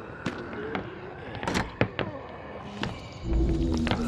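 A fist knocks on a wooden door.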